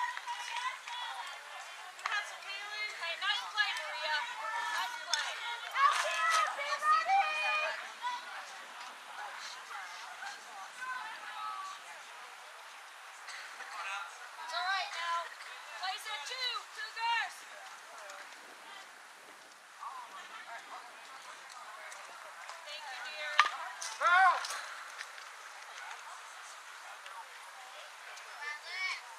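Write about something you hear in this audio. Young girls chant and shout cheers outdoors.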